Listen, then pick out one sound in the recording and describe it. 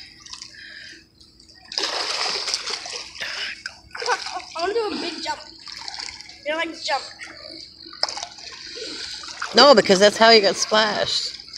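Water splashes and laps as a man swims.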